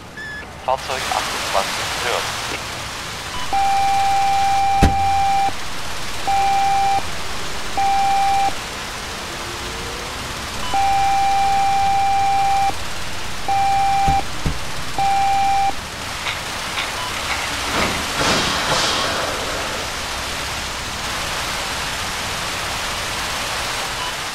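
Water from fire hoses sprays with a steady hiss.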